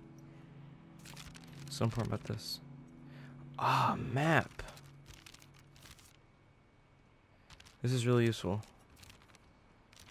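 A large sheet of paper rustles and crinkles.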